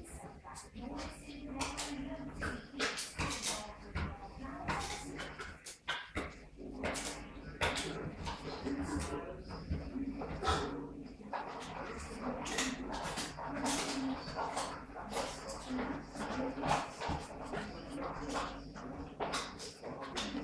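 A large dog sniffs and snuffles at something on the floor.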